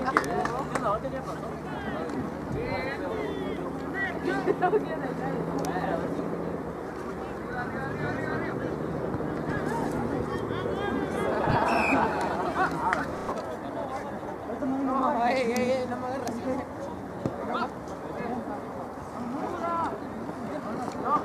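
Young players shout and call to each other across an open field outdoors.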